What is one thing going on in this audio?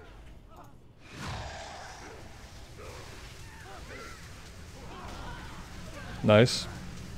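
Fiery blasts whoosh and crackle in bursts.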